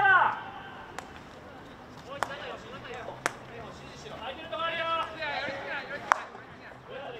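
A hockey stick strikes a ball with a sharp crack.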